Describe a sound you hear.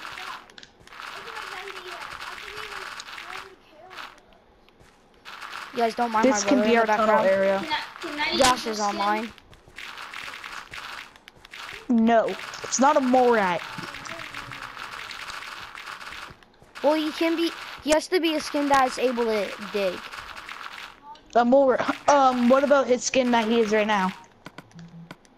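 Dirt and gravel crunch as they are dug away, over and over.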